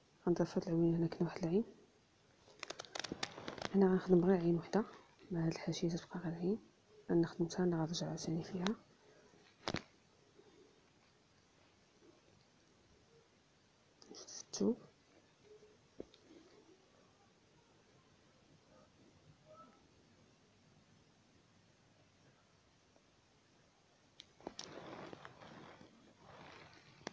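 Thread rustles softly as it is pulled through fabric by hand.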